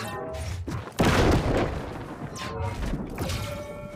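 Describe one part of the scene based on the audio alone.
A magical blast bursts with a roaring whoosh.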